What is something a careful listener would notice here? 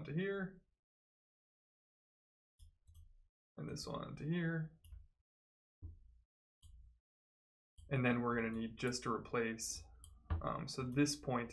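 A young man talks calmly and close into a microphone, in bursts with pauses.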